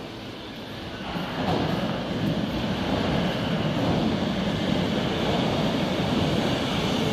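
An underground train approaches with a rising rumble in a large echoing station.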